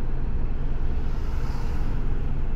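A passing vehicle rushes by close outside.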